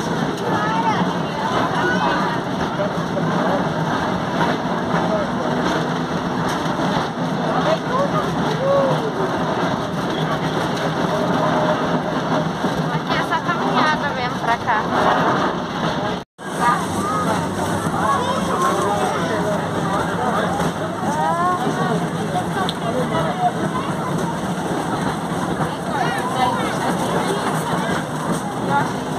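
Several young people chat and laugh nearby.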